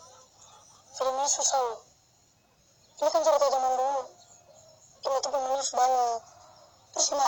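A young boy speaks calmly, close by.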